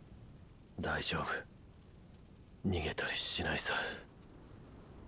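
A young man speaks quietly and strained, close by.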